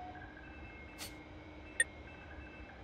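A soft interface click sounds.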